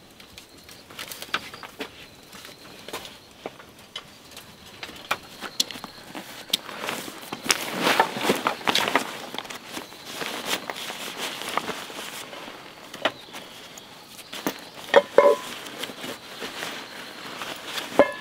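Fabric rustles as a backpack is packed.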